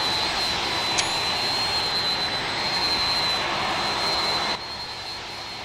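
Jet engines roar loudly.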